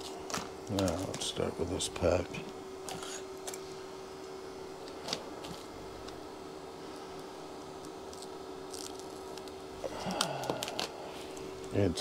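Paper rustles and crinkles as it is handled.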